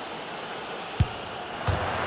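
A football is struck hard with a single thud.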